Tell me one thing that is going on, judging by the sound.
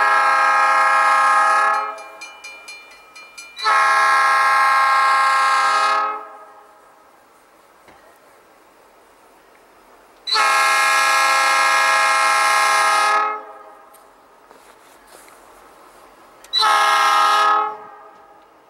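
A train horn blows loud, long blasts with a short one near the end.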